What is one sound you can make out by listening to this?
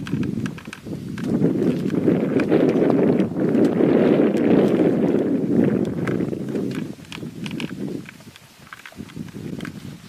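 A hyena's paws thud on dry ground as it runs.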